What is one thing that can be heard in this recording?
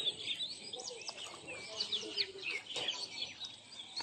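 A hooked fish splashes at the water's surface.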